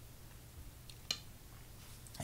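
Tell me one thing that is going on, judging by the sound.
A stone clicks down onto a game board.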